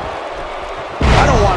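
A body slams hard onto a wrestling mat.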